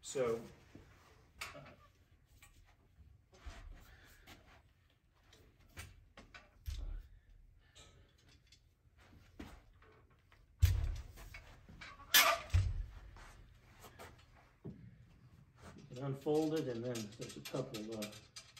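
A metal cart frame clanks and rattles as it is handled.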